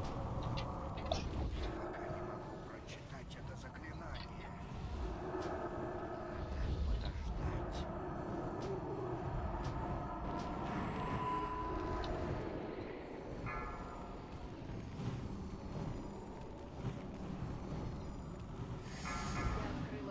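Game combat sounds of spells and blows clash and whoosh throughout.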